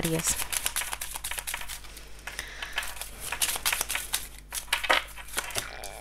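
Playing cards riffle and flick as a deck is shuffled.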